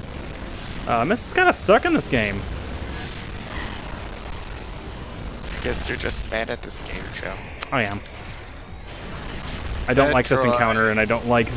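A laser gun fires in short bursts of sharp electronic zaps.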